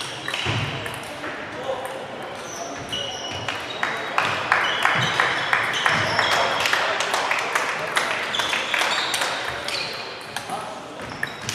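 A crowd of people murmurs and talks in the background.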